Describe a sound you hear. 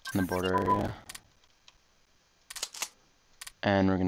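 A short game interface click sounds.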